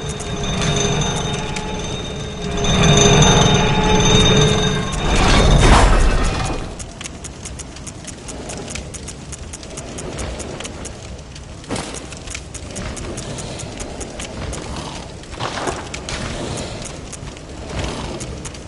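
Soft menu clicks tick repeatedly in quick succession.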